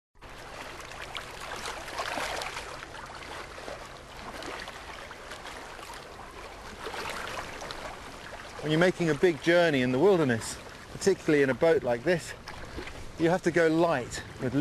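A paddle splashes and swishes through water.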